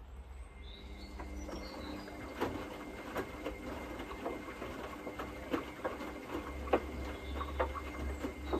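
Laundry and water slosh and thump inside a washing machine drum.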